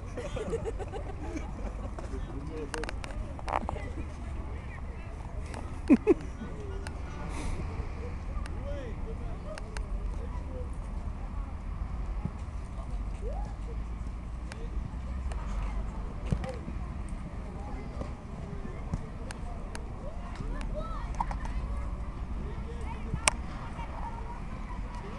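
Wind rumbles across the outdoor field.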